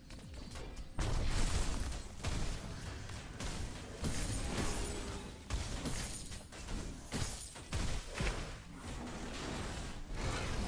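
Magic spells crackle and burst in a fast fight.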